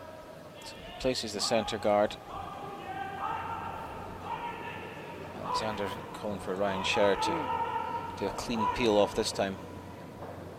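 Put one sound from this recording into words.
Men shout loudly and urgently in a large echoing hall.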